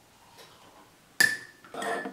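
A metal spoon clinks inside a ceramic mug.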